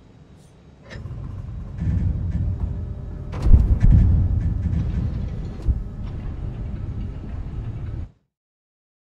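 Deep rumbling sounds play, then cut to silence.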